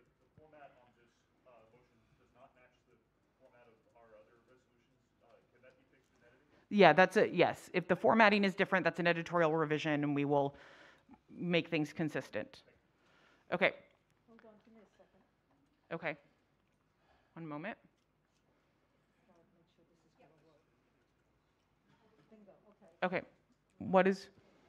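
A man speaks calmly through a microphone, heard over loudspeakers in a large room.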